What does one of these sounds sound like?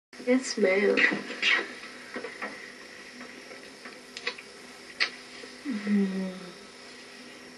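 A young woman speaks softly, heard through a television speaker.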